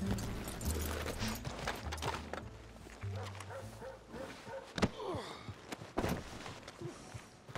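A horse's hooves thud and shuffle on dirt.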